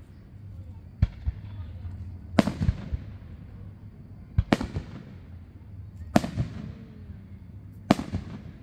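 Fireworks crackle faintly after each burst.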